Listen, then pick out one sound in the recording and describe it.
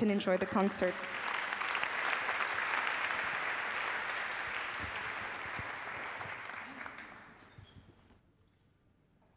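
An audience applauds loudly and then fades.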